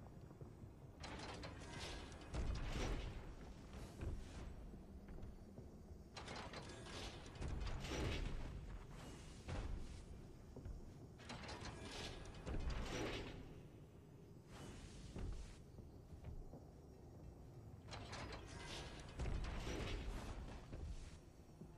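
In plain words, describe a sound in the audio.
Magic energy beams crackle and whoosh in bursts.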